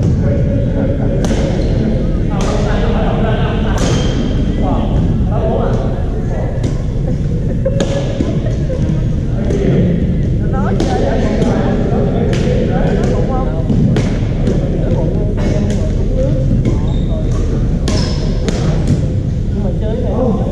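A large hall echoes with a steady rumble of play.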